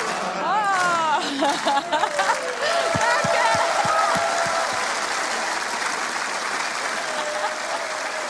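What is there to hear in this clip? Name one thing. A crowd of men claps and cheers.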